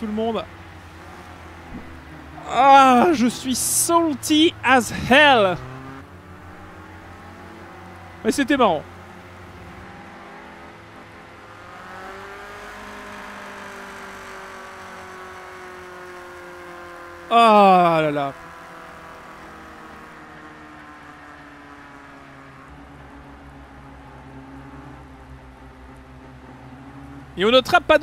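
Racing car engines drone steadily, rising and falling in pitch.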